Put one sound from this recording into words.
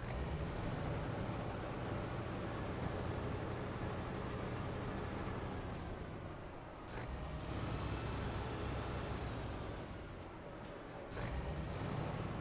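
A heavy truck engine rumbles low and steadily as the truck drives.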